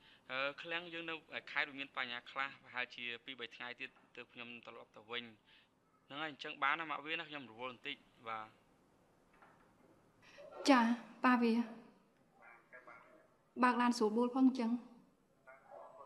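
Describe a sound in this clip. A young woman talks calmly on a phone, close by.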